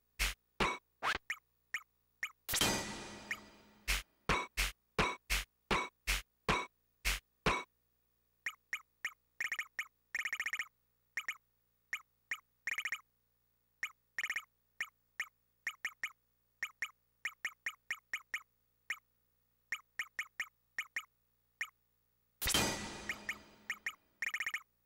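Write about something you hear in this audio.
Short electronic menu blips click quickly, one after another.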